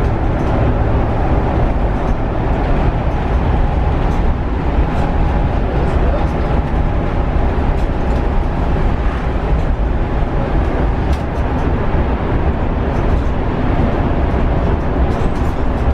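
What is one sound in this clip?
A vehicle's engine rumbles steadily from inside the cab as it drives along a road.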